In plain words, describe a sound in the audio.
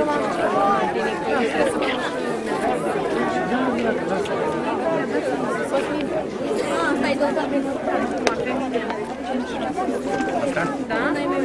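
A crowd of children and adults chatters outdoors.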